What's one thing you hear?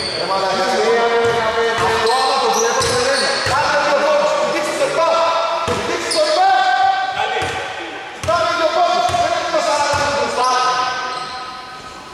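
Players shout to each other in a large echoing hall.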